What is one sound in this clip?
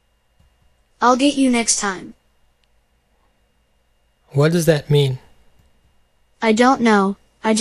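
A synthetic voice speaks through a small laptop speaker.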